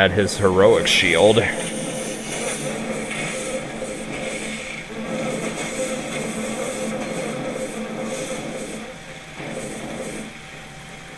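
Magic spells crackle and burst in a fight with monsters.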